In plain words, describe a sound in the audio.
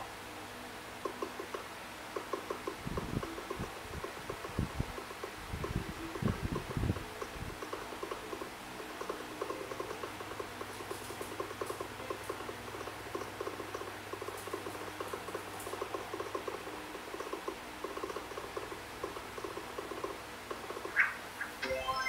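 Rapid chopping sound effects play from a mobile game.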